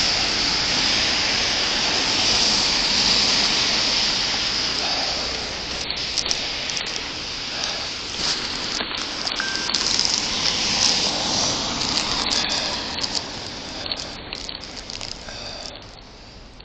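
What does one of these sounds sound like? A gloved hand rubs against the microphone.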